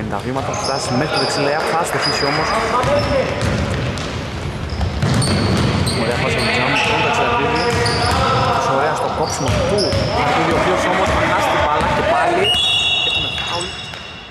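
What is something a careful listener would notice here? Men call out loudly to each other in a large echoing hall.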